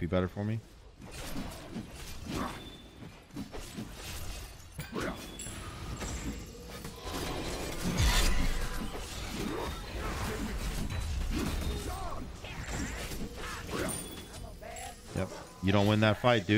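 Game weapons clash and spells burst in rapid hits.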